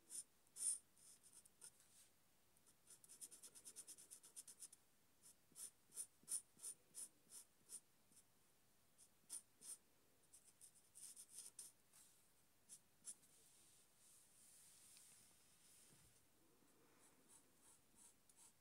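A marker squeaks and taps in quick strokes on paper.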